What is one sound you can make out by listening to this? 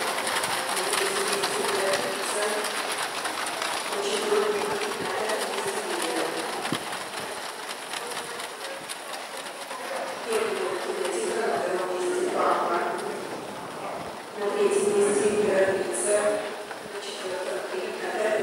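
Horses' hooves thud on packed snow.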